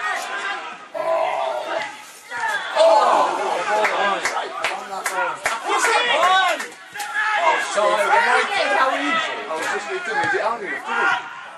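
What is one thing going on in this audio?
Men shout to each other across a football pitch.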